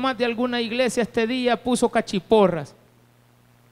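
A man speaks with animation through a microphone and loudspeakers.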